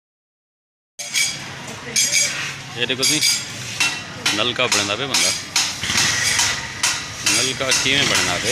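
A metal hand pump lever creaks and clanks as it is worked.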